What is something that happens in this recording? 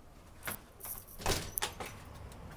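A door lock clicks.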